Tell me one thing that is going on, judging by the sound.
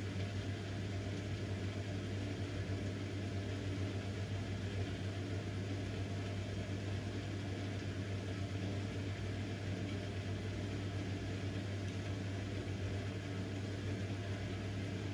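Water sloshes and splashes inside a washing machine drum.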